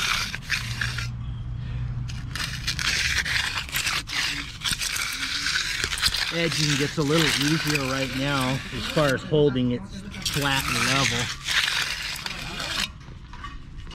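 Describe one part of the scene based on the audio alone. An edging trowel scrapes along wet concrete.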